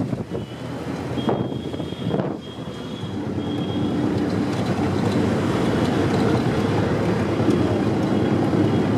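Road noise hums steadily beneath a moving car.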